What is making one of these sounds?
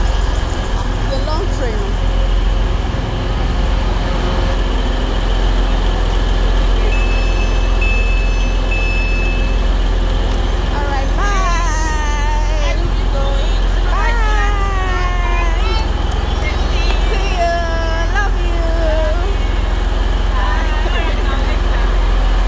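A train engine hums steadily and low.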